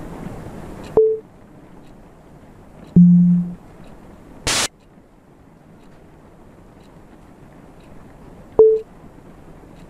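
A phone chimes with short message tones.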